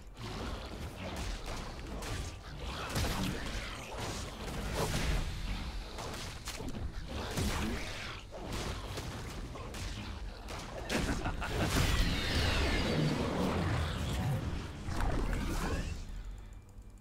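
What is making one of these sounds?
Game hits land with sharp impacts.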